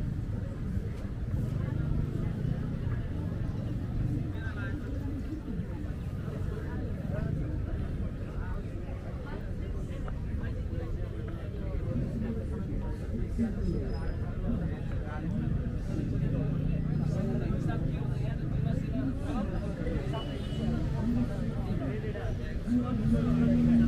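A crowd murmurs in the distance.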